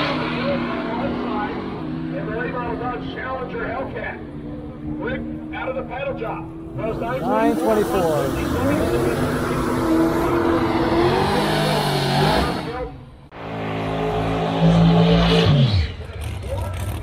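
A race car engine roars loudly and revs up and down.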